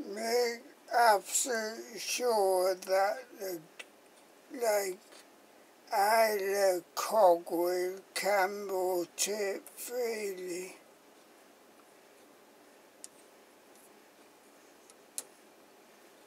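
Fingers click against a small plastic mechanism.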